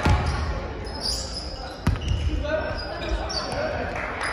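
Sneakers squeak on a hard wooden floor.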